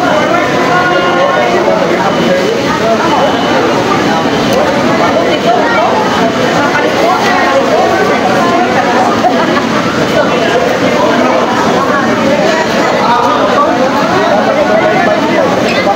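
Many voices of a crowd chatter close by and further off throughout.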